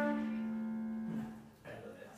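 A flute plays a long held note that ends.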